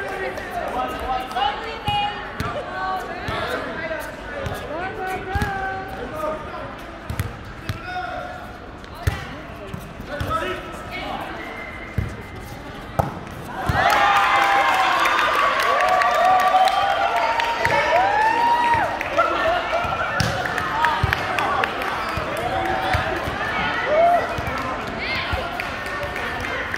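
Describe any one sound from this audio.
Sneakers squeak on a sports court floor.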